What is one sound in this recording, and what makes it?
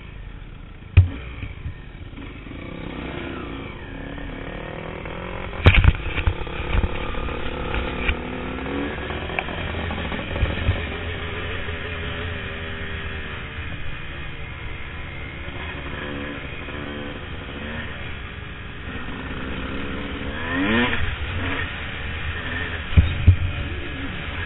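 A dirt bike's suspension thumps and rattles over bumps in the track.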